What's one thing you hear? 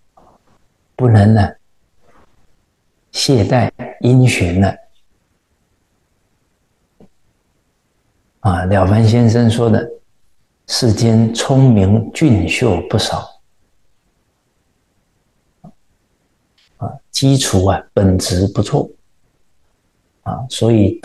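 A man speaks calmly and steadily into a close microphone, with pauses.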